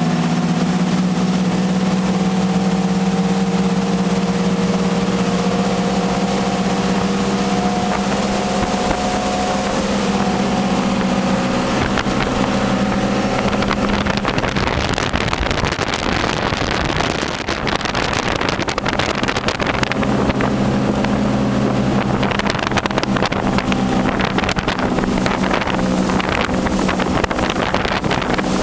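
A motorboat engine drones steadily at speed.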